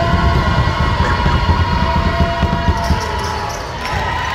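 A basketball bounces on a gym floor.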